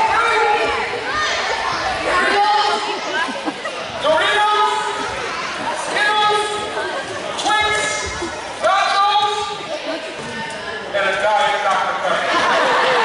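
A man talks with animation close by in an echoing hall.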